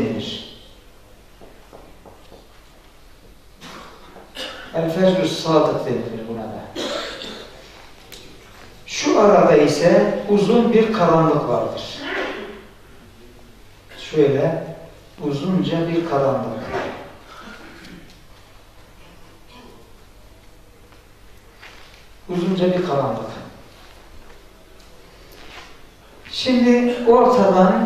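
A man lectures calmly through a headset microphone, pausing often.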